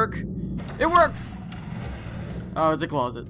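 A wooden door scrapes open.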